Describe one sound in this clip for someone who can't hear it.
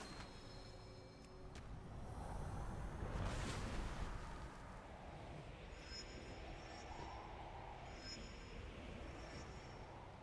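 Wind rushes past during a fast flight through the air.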